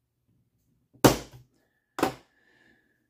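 A small tool knocks down onto a table.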